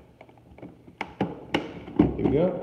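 A plastic lid clicks and snaps against a plastic container.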